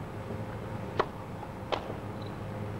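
A tennis ball is struck sharply with a racket.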